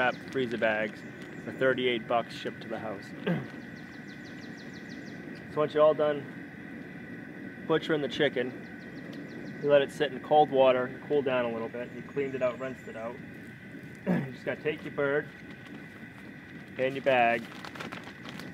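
A young man talks calmly outdoors, close by.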